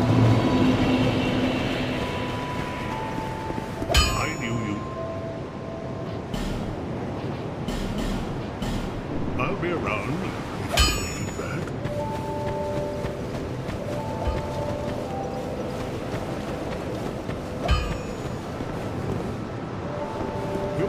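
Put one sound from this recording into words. Footsteps crunch on grass and stone.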